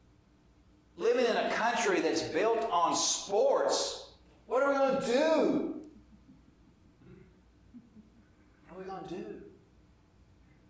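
A man speaks with emphasis through a microphone, pausing between phrases.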